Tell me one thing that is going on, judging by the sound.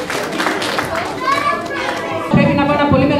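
Children chatter and call out excitedly.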